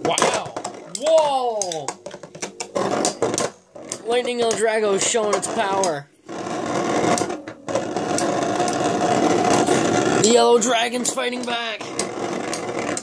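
Spinning tops whir steadily.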